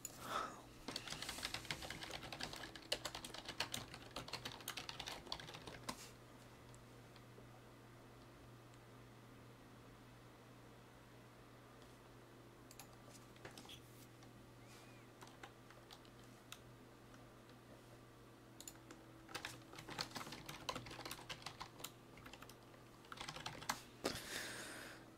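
Computer keys clatter rapidly as someone types.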